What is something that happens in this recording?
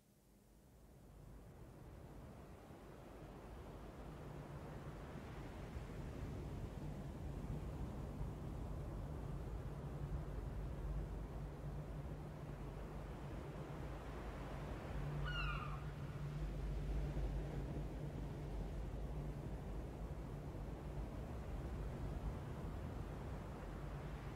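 Stormy sea waves roar and crash steadily, rising from silence at the start.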